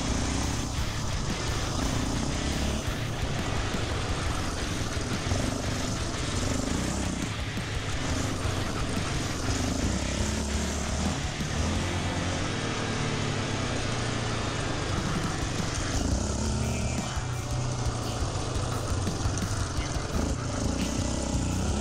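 An ATV engine revs and drones steadily up close.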